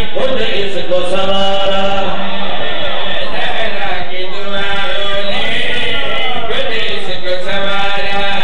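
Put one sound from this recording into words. A man chants melodically into a microphone, heard through a loudspeaker with echo.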